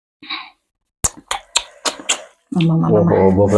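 Hands squish and mix rice with food.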